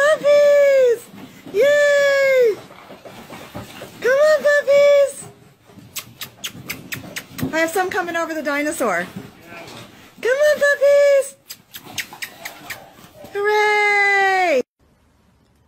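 Puppies yelp and howl in high, drawn-out cries.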